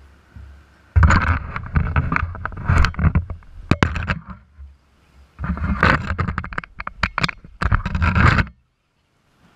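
Wheels scrape and clatter on rock.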